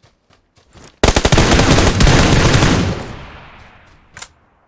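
A rifle fires a rapid burst of loud gunshots.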